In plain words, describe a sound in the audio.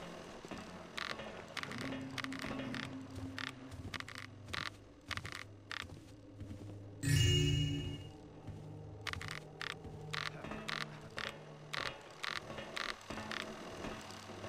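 A rope creaks with each pull.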